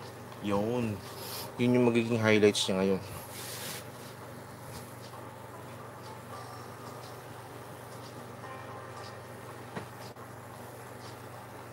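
A paintbrush dabs and scrapes softly on canvas.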